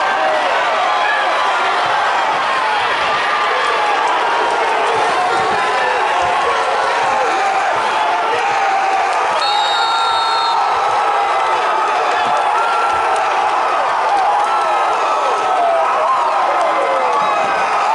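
A large crowd chatters and calls out in an echoing hall.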